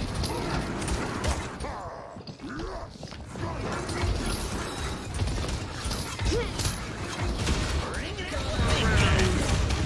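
Fiery explosions burst and roar.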